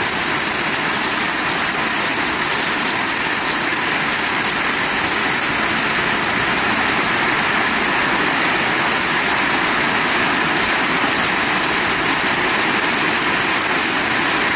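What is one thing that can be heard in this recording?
Rain drums loudly on metal roofs.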